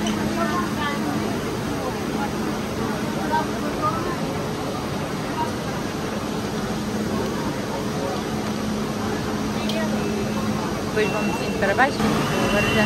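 A stopped train hums steadily close by.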